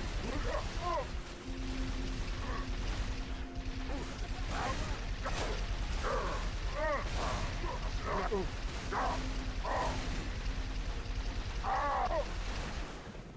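An energy weapon fires rapid crackling bursts.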